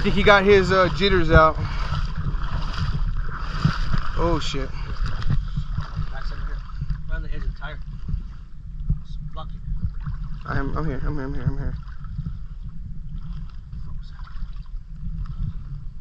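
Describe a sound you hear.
Water splashes and sloshes as a man wades through a river.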